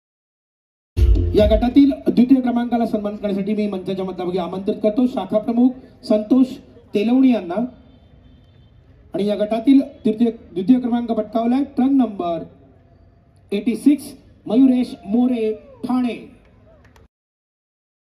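A man speaks with animation over a loudspeaker in a large echoing hall.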